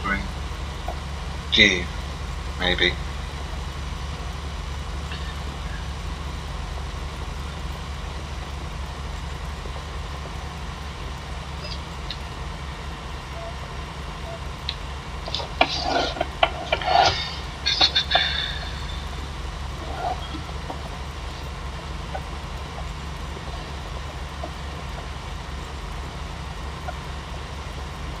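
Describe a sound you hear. A cultivator rattles over the soil.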